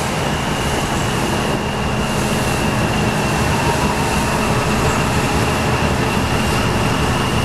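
A ship's engine rumbles steadily.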